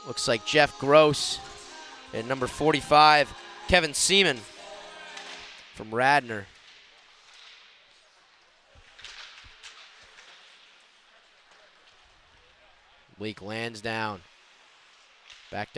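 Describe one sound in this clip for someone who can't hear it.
Ice skates scrape and swish across an ice rink.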